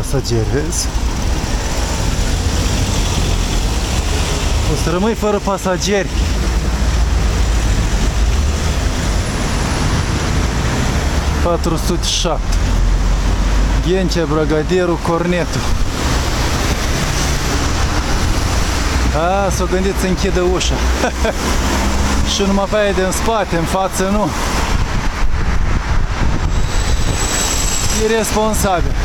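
A vehicle engine rumbles steadily while driving in traffic.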